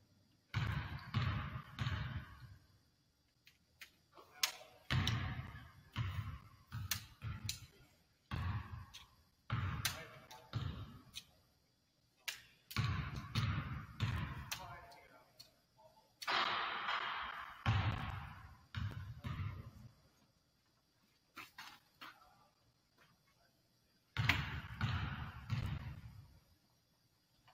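A basketball bounces on a hardwood court in a large echoing gym.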